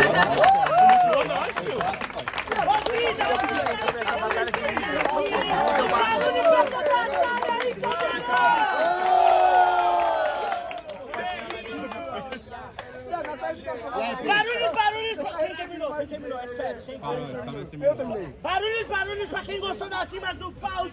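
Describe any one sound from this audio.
A young man raps loudly and with animation.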